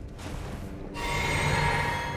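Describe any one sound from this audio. A magical shimmer rings out with a bright humming tone.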